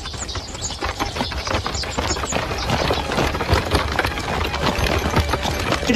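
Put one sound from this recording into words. A group of men march with heavy footsteps.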